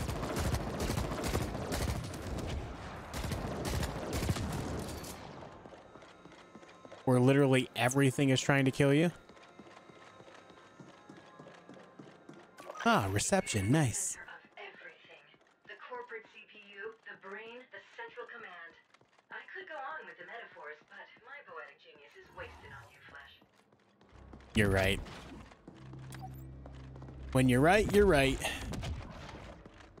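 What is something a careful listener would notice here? Rapid gunfire crackles in quick bursts.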